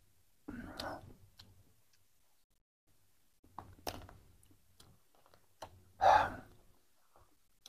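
A man eats, slurping and chewing close by.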